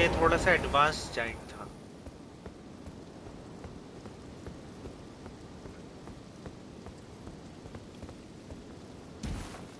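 Footsteps tap softly on stone.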